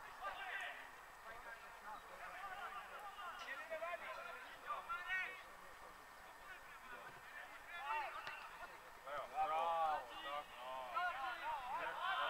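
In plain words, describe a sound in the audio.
Young men shout to each other from across an open field.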